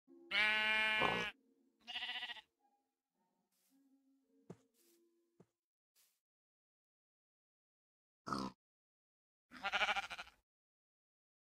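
A sheep bleats several times.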